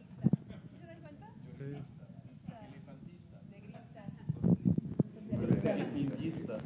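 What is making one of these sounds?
Several young adults chat and laugh close by.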